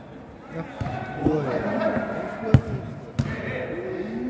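A football is kicked in a large echoing hall.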